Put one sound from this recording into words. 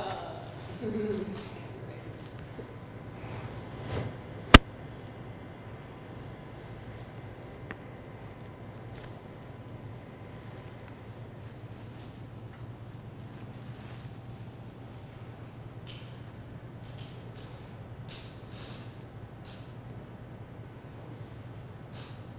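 A projector fan hums steadily.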